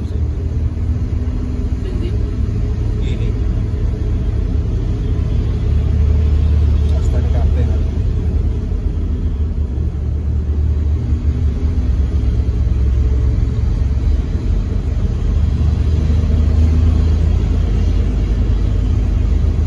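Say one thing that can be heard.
A vehicle's engine hums low and steady from inside the cab while driving.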